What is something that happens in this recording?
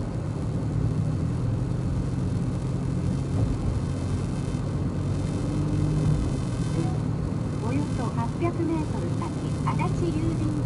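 A car engine hums steadily, with tyre noise heard from inside the car.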